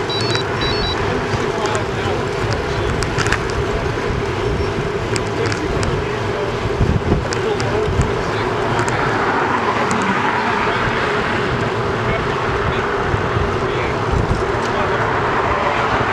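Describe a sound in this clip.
Wind rushes and buffets steadily over the microphone outdoors.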